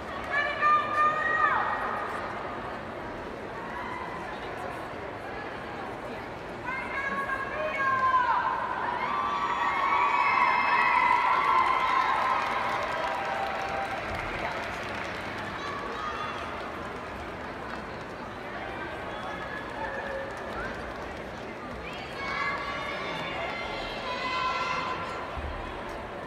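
A group of young women shout and cheer together loudly, echoing in a large arena.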